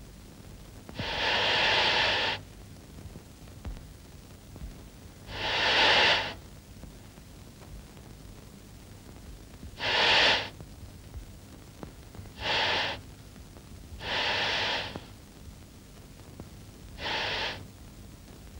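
A snake hisses loudly in short bursts.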